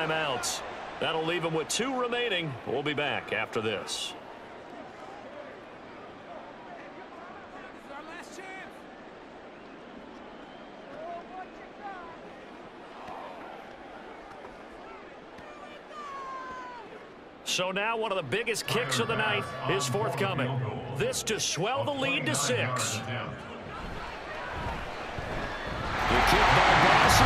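A large stadium crowd murmurs and roars.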